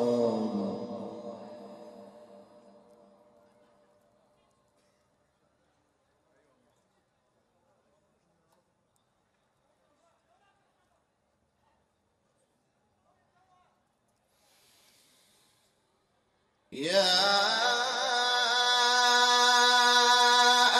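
A man chants in a long, drawn-out voice through a microphone and loudspeakers, echoing in a large space.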